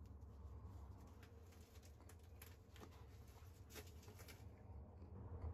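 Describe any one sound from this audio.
Small flakes snap and click off a stone under pressure.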